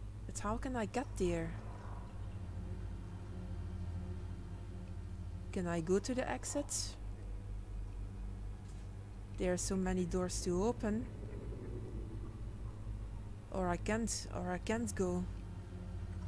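A young woman talks casually into a close microphone, in short bursts.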